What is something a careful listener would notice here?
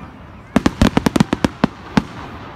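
Firework shells crackle and pop in quick bursts.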